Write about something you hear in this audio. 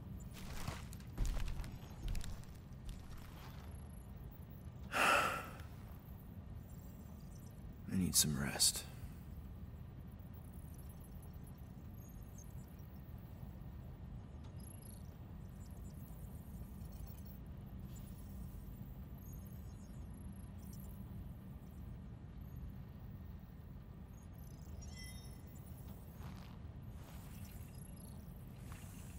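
A spacecraft's engine hums low and steady.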